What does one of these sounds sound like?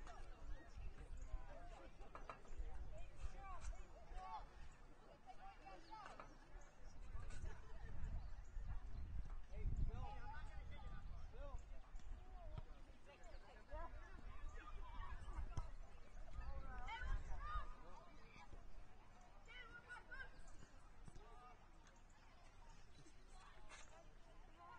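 Spectators and players shout and call out across an open field.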